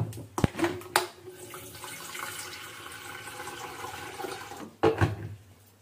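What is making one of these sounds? Water pours into a kettle.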